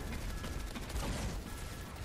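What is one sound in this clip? Explosions burst close by.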